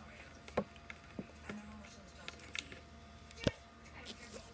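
A phone is handled close by, with knocks and rubbing.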